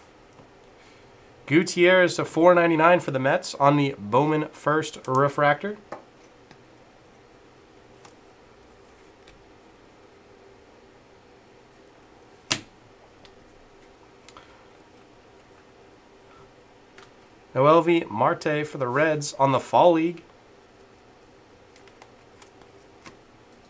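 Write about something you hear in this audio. Trading cards rustle and click softly as hands handle them.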